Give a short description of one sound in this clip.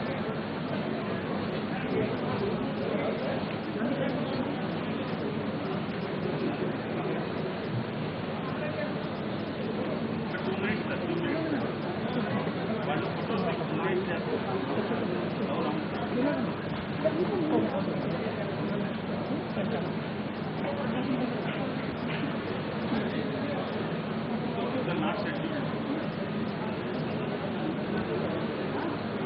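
A crowd of people chatters in a large hall.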